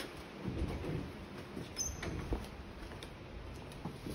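Heeled shoes click on a hard floor.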